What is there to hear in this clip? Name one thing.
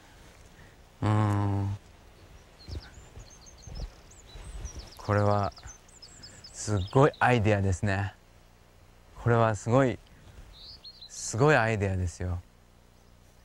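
A man speaks calmly and close by, outdoors.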